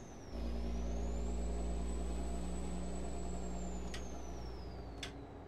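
A truck engine drones steadily at a low pitch.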